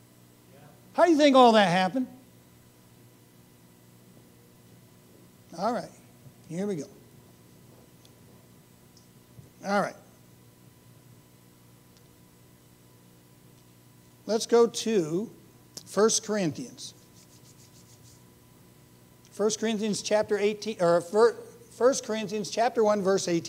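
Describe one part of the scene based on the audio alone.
A middle-aged man speaks through a microphone in bursts, with pauses, in a room with some echo.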